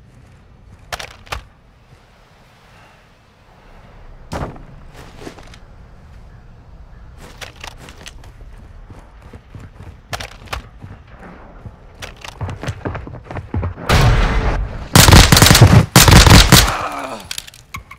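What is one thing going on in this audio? Guns fire loud shots in quick bursts.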